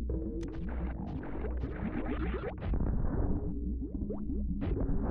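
A laser blaster fires in short electronic zaps.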